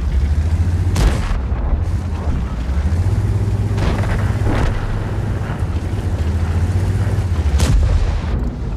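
Shots boom sharply a few times.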